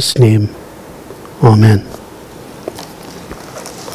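Paper rustles as a page is turned.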